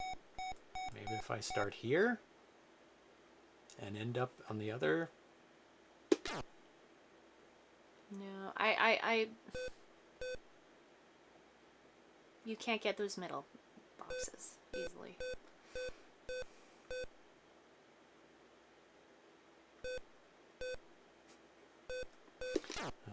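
Short electronic beeps sound from a video game.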